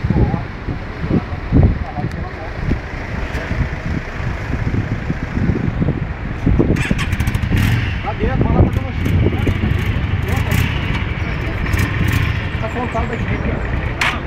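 A motorcycle engine idles with a low steady rumble.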